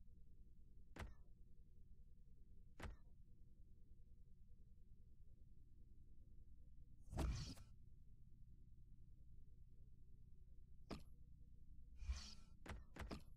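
Short electronic clicks and whooshes sound as menu items are selected.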